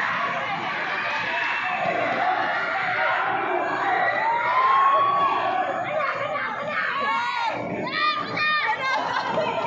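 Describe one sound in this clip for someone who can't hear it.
A crowd of young people chatters and cheers in a large echoing hall.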